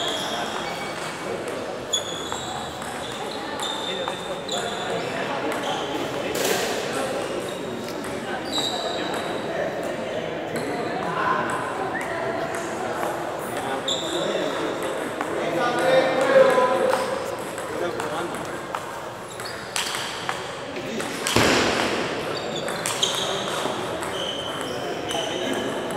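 Ping-pong balls click against paddles and tables throughout a large echoing hall.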